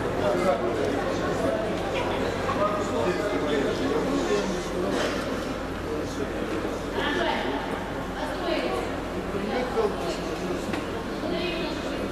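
A large crowd of men and women chatter in a large echoing hall.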